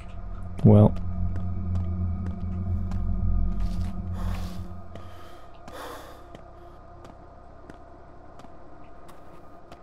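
Footsteps tread on cobblestones.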